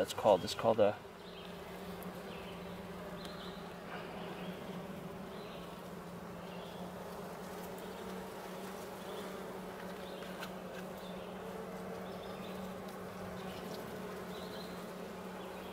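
Honeybees buzz in a dense swarm over a comb.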